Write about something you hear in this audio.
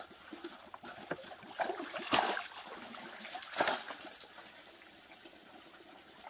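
Water splashes as a bucket is dipped and poured into a pond.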